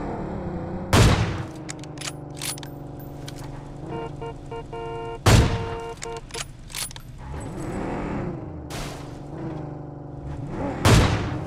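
A rifle fires loud single shots that echo.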